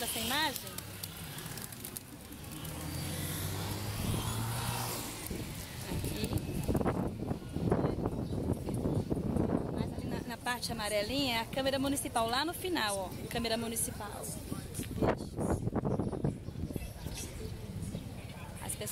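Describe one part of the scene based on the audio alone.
A middle-aged woman talks animatedly close to a microphone.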